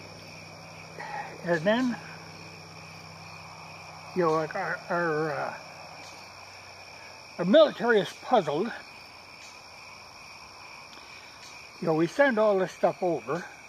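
An elderly man speaks slowly and calmly in short bursts, close by, outdoors.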